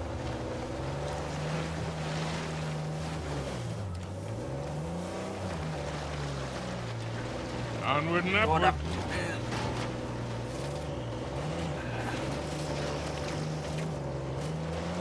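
A jeep engine rumbles and revs as it drives over rough ground.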